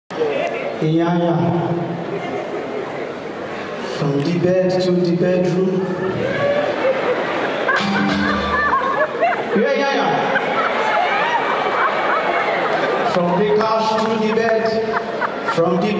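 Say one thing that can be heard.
A young man talks with animation into a microphone, heard through loudspeakers in a large hall.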